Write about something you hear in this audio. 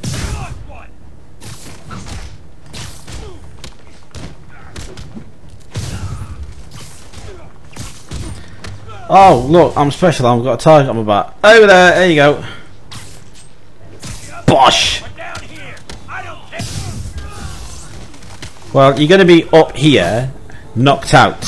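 Punches and blows thud in a fight.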